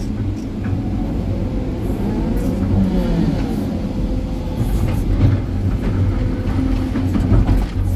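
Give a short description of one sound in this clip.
Rocks clatter and scrape against an excavator bucket.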